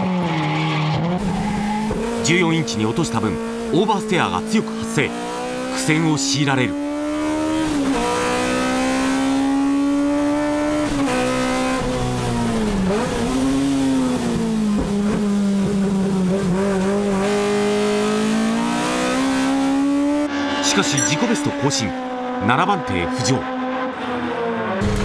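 A race car engine roars loudly, rising and falling in pitch as it shifts gears.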